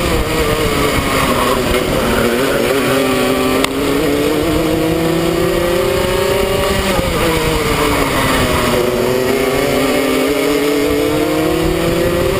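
A kart engine buzzes loudly up close, its pitch rising and dropping as it speeds up and slows.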